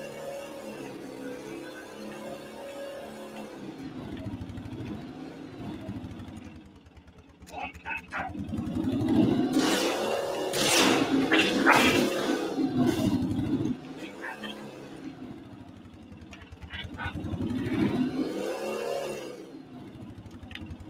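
A small vehicle's engine hums and revs up and down.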